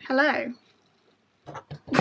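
A woman laughs nearby.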